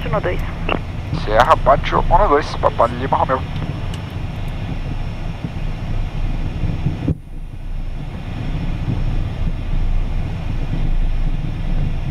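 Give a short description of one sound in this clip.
A jet engine roars steadily as the plane rolls down the runway.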